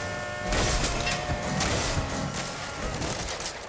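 A car engine roars and revs.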